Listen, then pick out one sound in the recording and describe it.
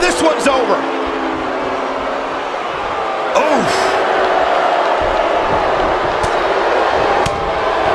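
A large crowd cheers and murmurs steadily.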